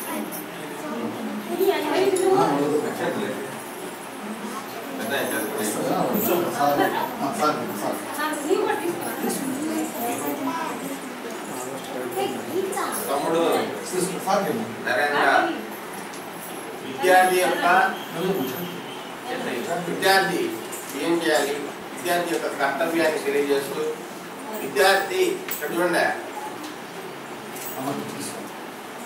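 Children murmur and chatter quietly.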